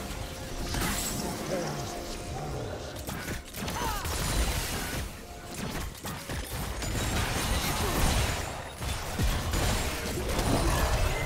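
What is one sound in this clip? Spell effects whoosh, zap and clash in a fast game battle.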